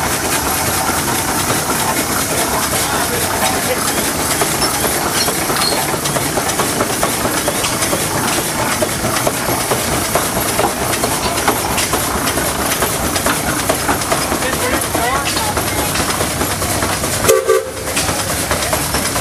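A steam engine chugs and hisses steadily nearby.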